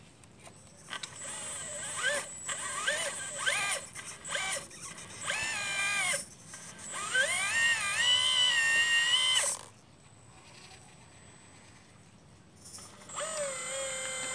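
A small electric motor whines and changes pitch as a toy excavator arm moves.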